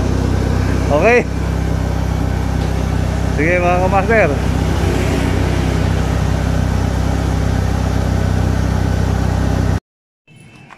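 A car engine idles with a steady low hum.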